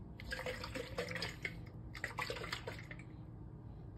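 A plastic cap rattles and scrapes as a hand turns it.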